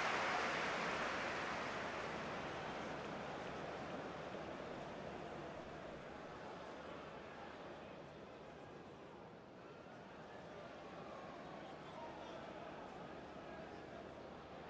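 A stadium crowd roars and cheers steadily, slowly fading.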